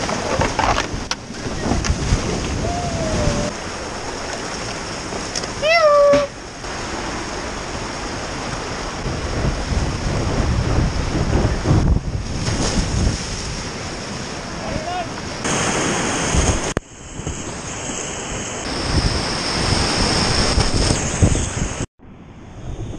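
Whitewater rushes and roars loudly close by.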